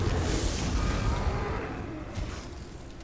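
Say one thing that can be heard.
Magic blasts crackle and thud in a fight with a beast.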